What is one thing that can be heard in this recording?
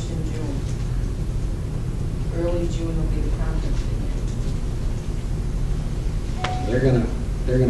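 A middle-aged man speaks calmly to an audience.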